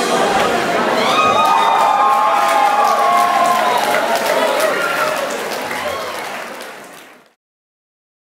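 A crowd cheers loudly in a large hall, then fades.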